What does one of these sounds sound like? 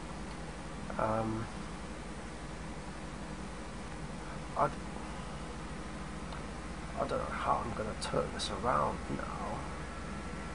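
A young man speaks in short bursts through a computer microphone.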